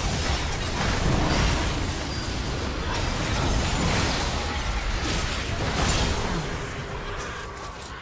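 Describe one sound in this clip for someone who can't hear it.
Spell effects whoosh and crackle in a fast-paced game fight.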